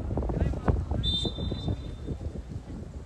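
A referee's whistle blows once briefly.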